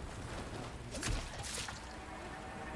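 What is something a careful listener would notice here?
A heavy punch lands with a thud.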